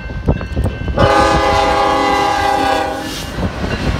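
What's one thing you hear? A train horn blares loudly and steadily.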